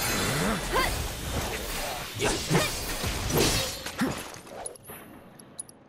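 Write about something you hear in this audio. Sword slashes and impacts crash in a video game battle.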